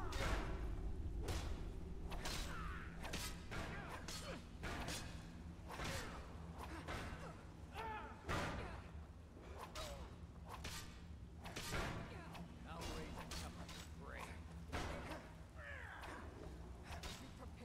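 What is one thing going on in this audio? Men grunt and yell in pain during combat.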